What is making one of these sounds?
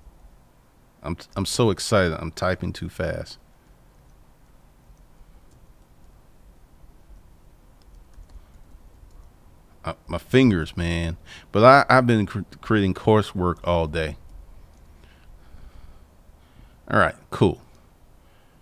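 A man speaks calmly into a nearby microphone, in short bursts with pauses.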